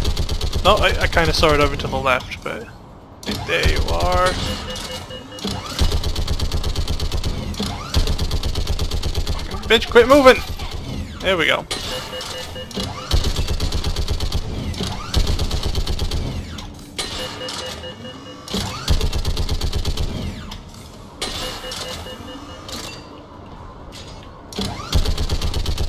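Rapid gunfire rattles in repeated bursts.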